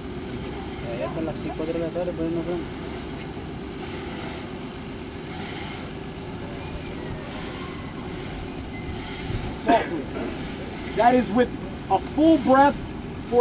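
A man shouts loudly nearby, outdoors.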